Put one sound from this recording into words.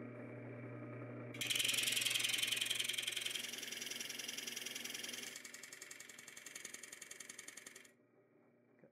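A machine whirs steadily with a high whine, then stops.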